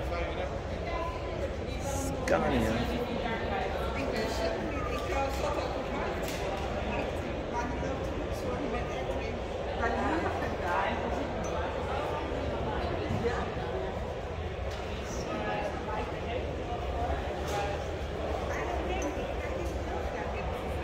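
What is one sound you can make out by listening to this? A crowd of people murmurs and chatters in a large echoing hall.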